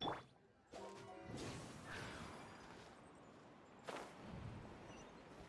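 Wind rushes past during a glide through the air.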